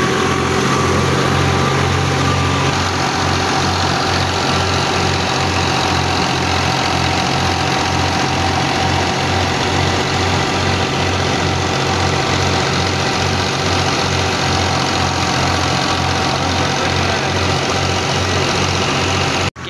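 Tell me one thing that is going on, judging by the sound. A threshing machine whirs and rattles as it runs.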